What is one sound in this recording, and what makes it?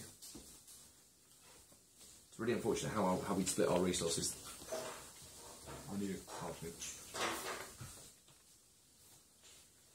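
Playing cards are slid and laid down softly on a table.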